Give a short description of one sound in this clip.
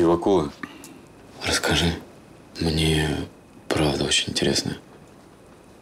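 A man speaks quietly and intently up close.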